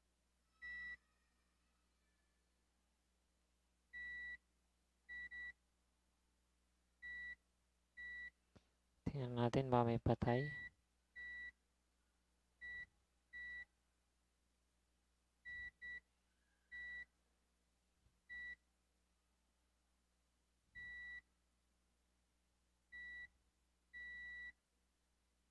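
A multimeter beeps in short, steady tones as a probe touches the contacts.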